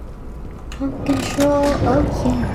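A metal lever clanks as it is pulled.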